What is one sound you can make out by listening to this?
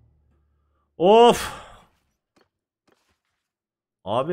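A man speaks with animation through a close microphone.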